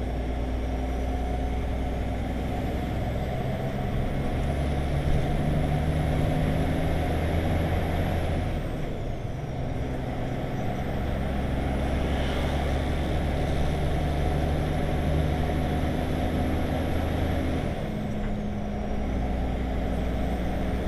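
Tyres roar on a wet road.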